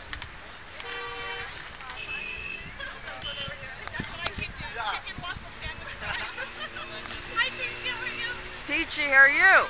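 Car horns honk from passing traffic.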